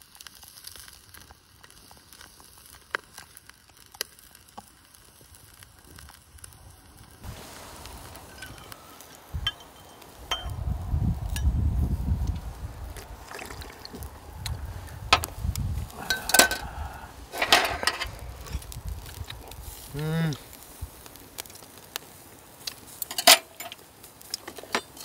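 A wood fire crackles and pops in a stove.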